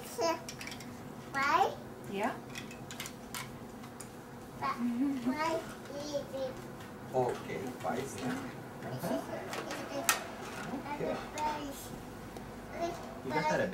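A toddler girl babbles and squeals nearby.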